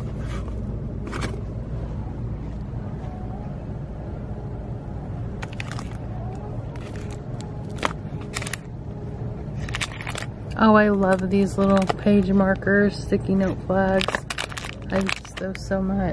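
Plastic packaging crinkles as a hand handles it.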